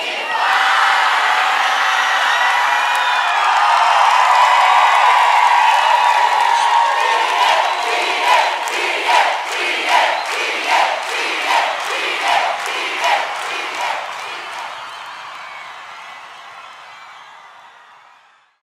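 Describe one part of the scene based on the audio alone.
A large crowd cheers and screams in a big echoing hall, then slowly fades.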